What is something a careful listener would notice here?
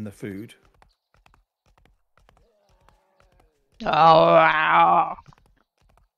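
A horse's hooves thud steadily at a gallop.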